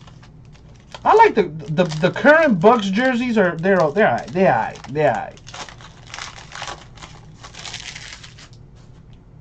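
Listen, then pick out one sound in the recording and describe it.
A foil wrapper crinkles and tears as a pack is opened.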